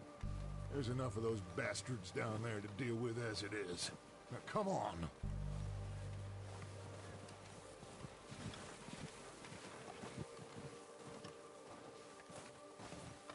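Horses trudge through deep snow with soft, crunching steps.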